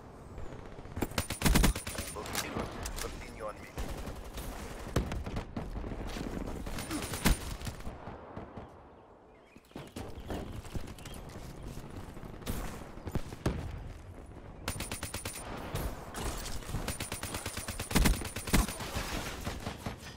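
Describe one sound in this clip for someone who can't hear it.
Rapid gunfire bursts out in loud volleys.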